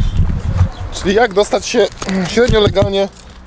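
A man talks close to the microphone.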